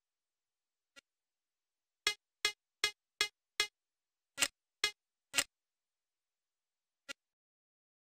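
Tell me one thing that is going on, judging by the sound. Short menu bleeps sound one after another.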